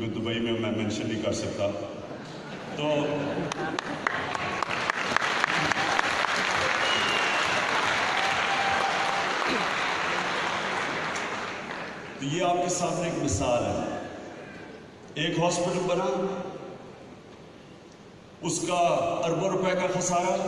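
A man speaks with animation into a microphone, heard through loudspeakers in a large echoing hall.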